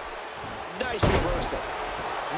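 A heavy body slams down onto a wrestling mat with a loud thud.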